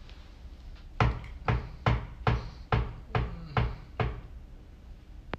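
Keyboard keys clatter in a steady rhythm.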